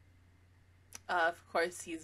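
A young woman speaks briefly, close to a microphone.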